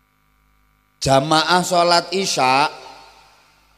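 A man speaks with animation through a microphone and loudspeakers, echoing in a large space.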